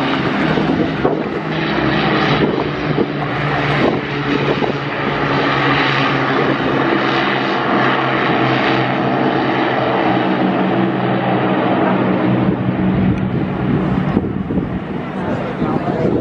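The four Merlin piston engines of an Avro Lancaster bomber drone as it flies low overhead.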